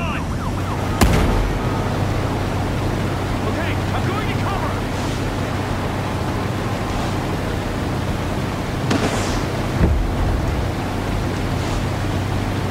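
A motorboat speeds across the water with its engine droning.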